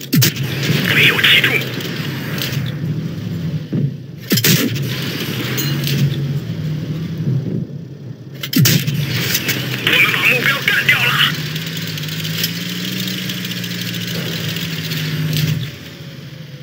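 A tank engine rumbles in a video game.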